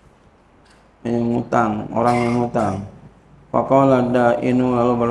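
A man speaks calmly into a microphone, in a slow chanting voice.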